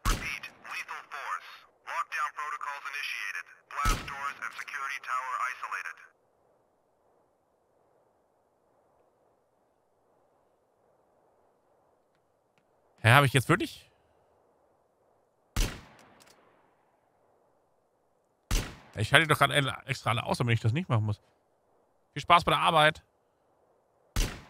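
A rifle fires single loud shots.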